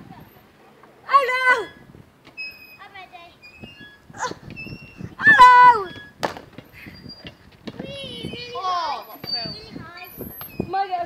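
A young boy talks and calls out excitedly close by.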